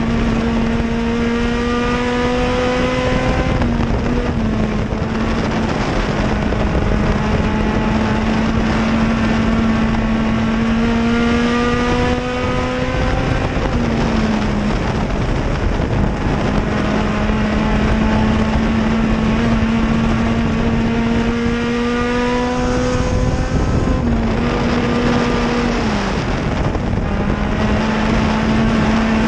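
Tyres rumble and spray over loose dirt.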